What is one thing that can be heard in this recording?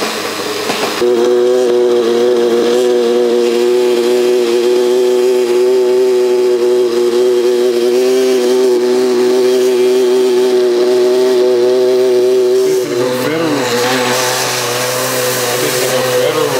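A blender motor whirs steadily, blending a thick mixture.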